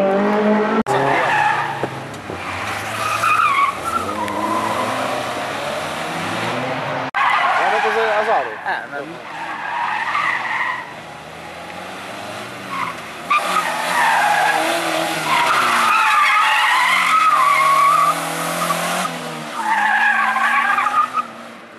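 Car tyres screech on asphalt.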